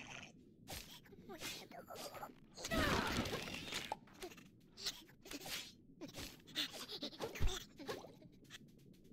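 Blows land with quick thuds and pops.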